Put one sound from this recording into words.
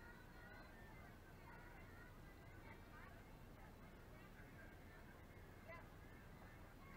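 Young girls call out faintly in the distance across an open field.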